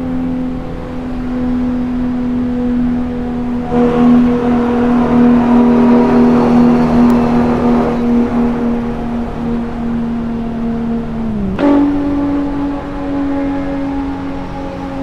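Wind and road noise rush past a fast car.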